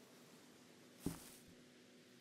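A small cup is set down with a single knock.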